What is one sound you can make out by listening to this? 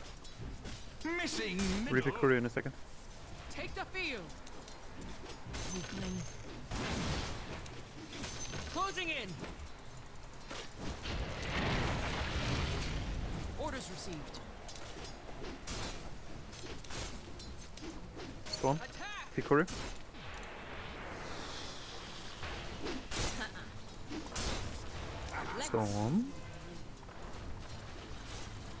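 Magic spells and weapon blows crash and clang in a video game.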